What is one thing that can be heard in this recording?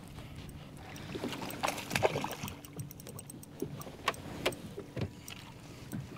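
A fishing reel clicks and whirs as line is reeled in.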